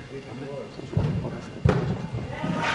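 A small toy car thuds down onto a hard floor in an echoing hall.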